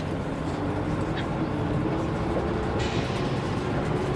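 A baby babbles.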